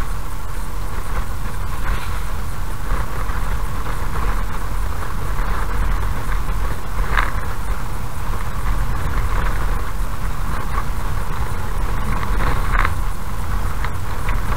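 A car's engine hums steadily as it drives slowly along a rough road.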